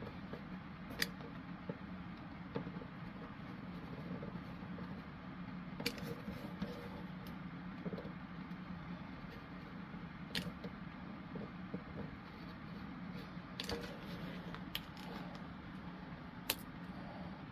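Paper rustles and taps against a tabletop.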